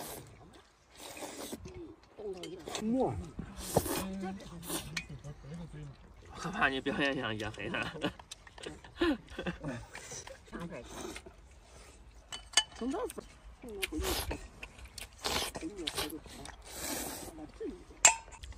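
A man slurps soup loudly from a bowl, close by.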